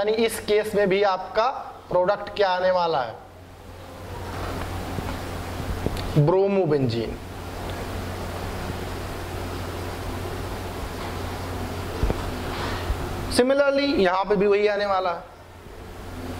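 A man speaks calmly into a small microphone.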